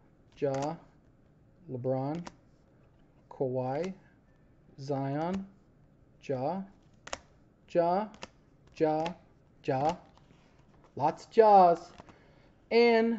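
Plastic card holders click and rustle as hands handle them.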